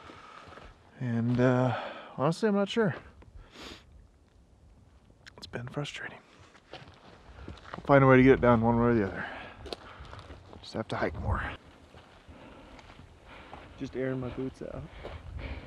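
A man speaks calmly close by, in bursts with pauses.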